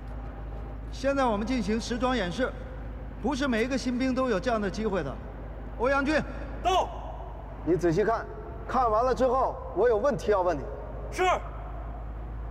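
A man speaks firmly in a loud, clear voice.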